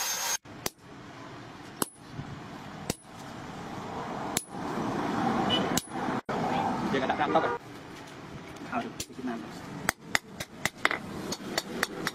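A hammer strikes hot metal on an anvil with sharp ringing clangs.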